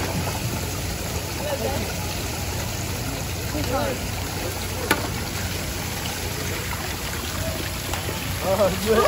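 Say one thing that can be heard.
Water trickles and splashes through pipes.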